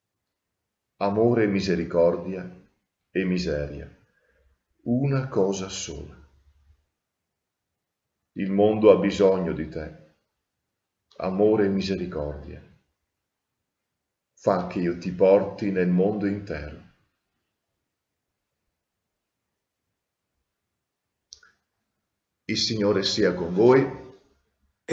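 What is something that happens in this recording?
A middle-aged man speaks calmly and slowly in short phrases, close to a microphone.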